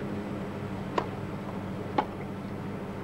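A tennis ball is struck hard with a racket, giving sharp pops.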